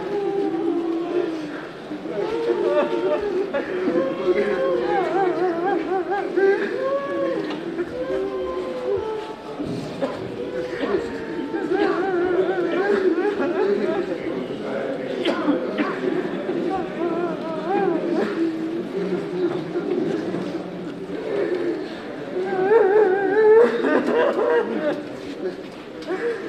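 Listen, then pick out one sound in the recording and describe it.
A crowd of men chant and sing together in a large echoing hall.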